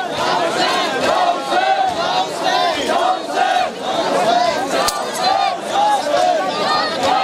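A crowd of men chants loudly in rhythm outdoors.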